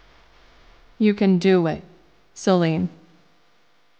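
A young woman speaks softly to herself, close by.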